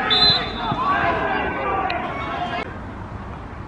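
Men shout and call out across an open pitch.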